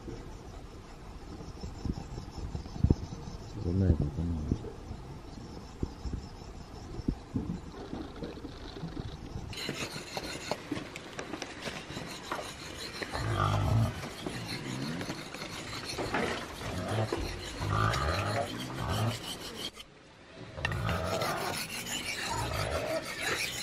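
A knife blade scrapes rhythmically against a sharpening stone.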